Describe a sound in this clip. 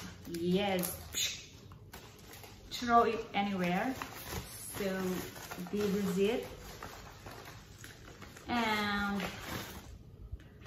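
A padded paper envelope rustles and crinkles.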